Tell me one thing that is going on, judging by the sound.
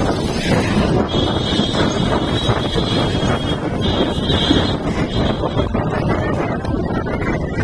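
Motorcycle engines hum nearby in traffic.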